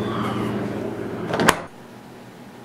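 A refrigerator door thumps shut.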